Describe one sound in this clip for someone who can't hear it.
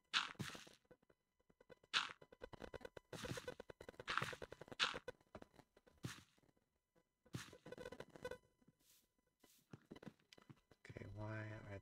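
Footsteps thud quickly on soft ground.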